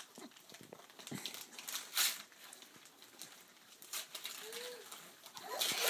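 Wrapping paper rustles and tears as a gift is opened.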